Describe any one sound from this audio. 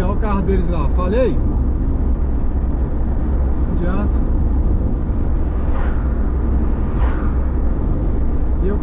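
A car engine and tyres hum steadily from inside a moving car.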